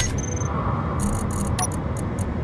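Short electronic beeps sound in quick succession.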